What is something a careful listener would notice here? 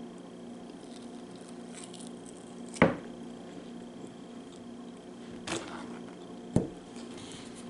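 A woman makes wet sucking and licking sounds close to a microphone.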